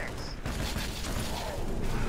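An energy weapon fires bursts.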